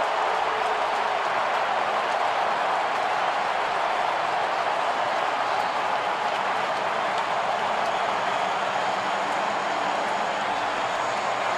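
A crowd claps and whistles.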